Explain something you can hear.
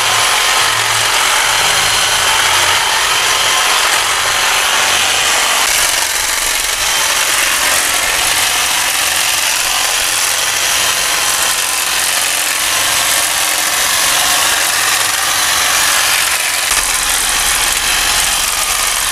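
An electric hedge trimmer buzzes steadily while clipping branches.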